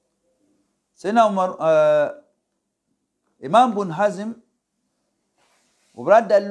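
An elderly man speaks slowly and calmly into a close microphone, with pauses.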